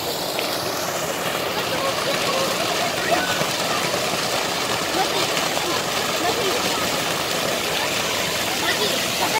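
A stream of water pours and splashes into a pool.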